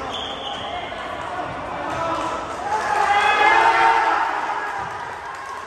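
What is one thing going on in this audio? Young men shout and cheer in a large echoing gym.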